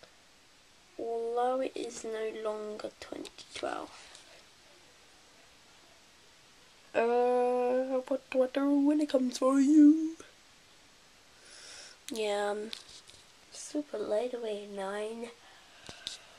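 A girl speaks with animation close by, her voice rising and falling in a sing-song way.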